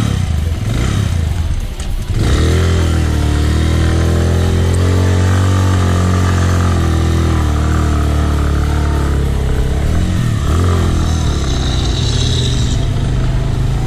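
A motorcycle engine idles with a steady, low rumble close by.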